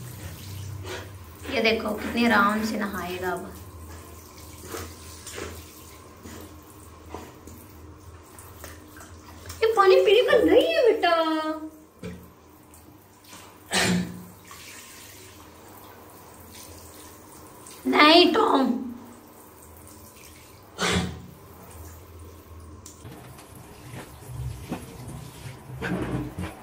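Water sprays from a shower head and patters onto a wet dog.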